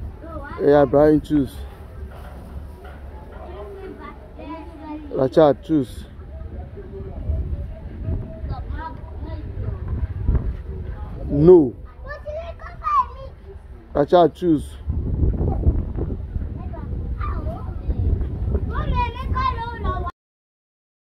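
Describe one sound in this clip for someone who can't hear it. Young boys talk and laugh excitedly close by.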